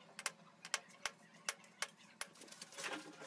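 A pencil taps and scratches against a tile.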